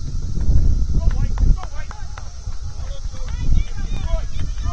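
Young players shout faintly across an open field.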